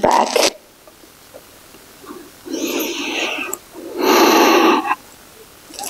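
A young woman breathes in and out deeply and audibly, close by.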